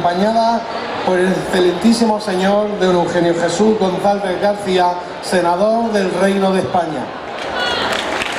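A man speaks with animation through a loudspeaker.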